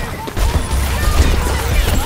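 An explosion booms close by.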